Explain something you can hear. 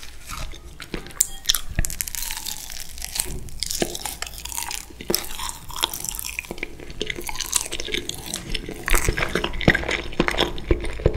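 A young man bites and chews soft food with wet, smacking mouth sounds close to a microphone.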